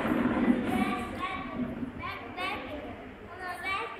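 A plastic chair scrapes across the floor.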